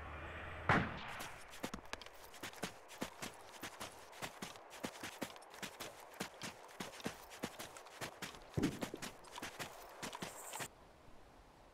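Footsteps thud quickly on sandy ground.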